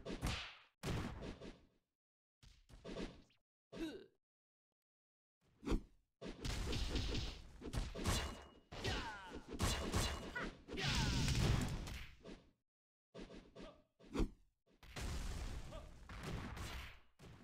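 Game sound effects of hits and blasts burst out in quick bursts.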